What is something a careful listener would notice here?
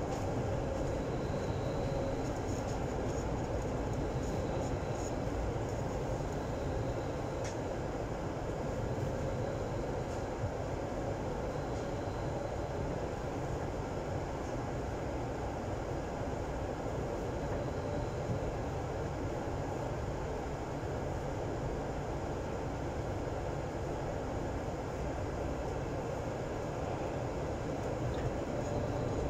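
An underground train rumbles at speed through a tunnel.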